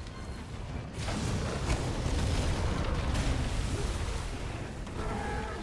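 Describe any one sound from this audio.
A blast of ice bursts with a deep rumble.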